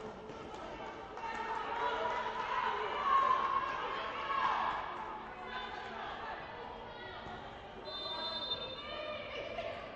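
Spectators shout and cheer at a distance in a large echoing hall.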